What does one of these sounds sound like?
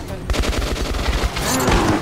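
A monster snarls and roars.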